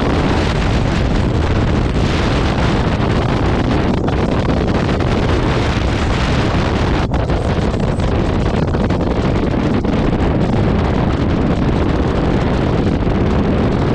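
Wind roars loudly and steadily against a microphone at speed.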